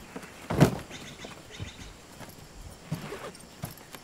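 A zipper rips open on a bag.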